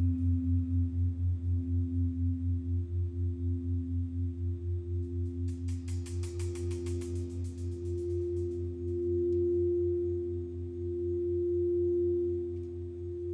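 A singing bowl rings with a steady, swelling tone.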